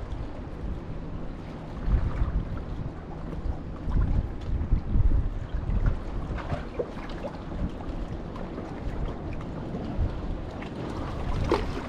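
Small waves lap against rocks.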